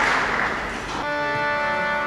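An accordion orchestra begins to play.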